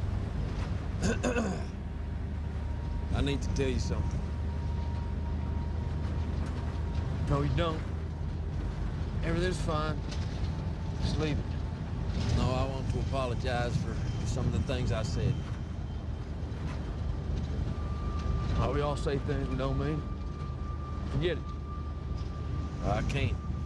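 A young man speaks quietly and tensely.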